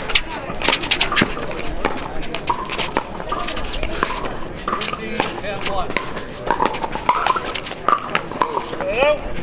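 Paddles hit a ball back and forth with sharp pops.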